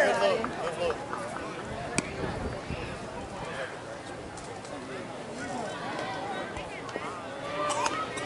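Several men talk and call out across an open field outdoors.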